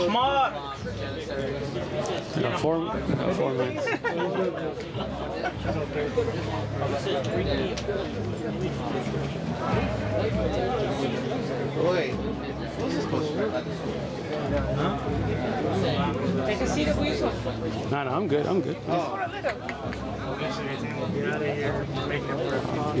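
Several men talk with animation close by, outdoors.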